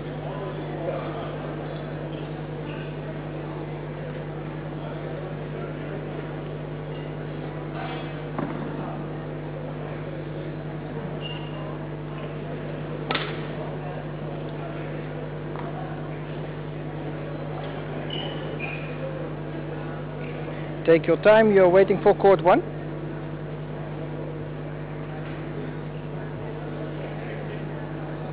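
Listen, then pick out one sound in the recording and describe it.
A crowd murmurs softly in a large echoing hall.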